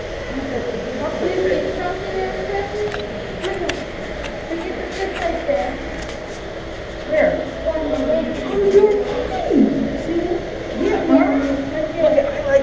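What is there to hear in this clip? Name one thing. A young boy talks close by, slightly muffled.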